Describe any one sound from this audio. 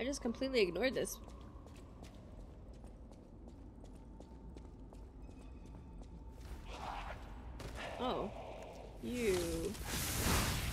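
A young woman speaks casually into a microphone.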